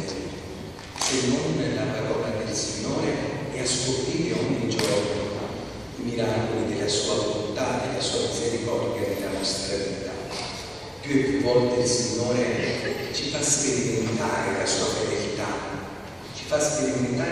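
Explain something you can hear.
A man speaks steadily through a loudspeaker, echoing in a large hall.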